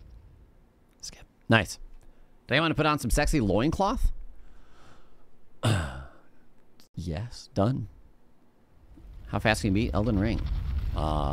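A man speaks into a microphone with animation, close by.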